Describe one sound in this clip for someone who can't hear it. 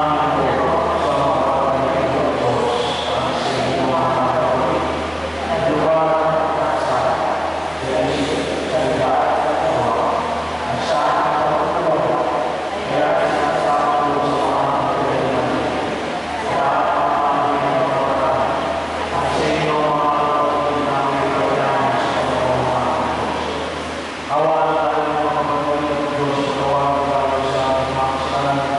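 A man chants steadily through a microphone in a large echoing hall.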